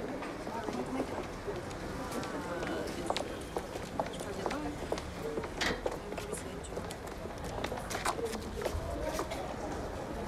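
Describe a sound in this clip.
Footsteps clatter on pavement.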